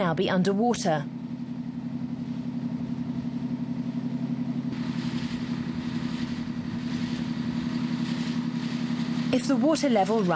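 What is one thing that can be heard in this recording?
A boat engine chugs steadily close by.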